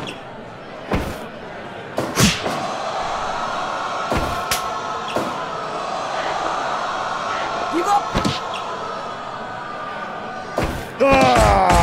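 Blows land with sharp slaps and thuds.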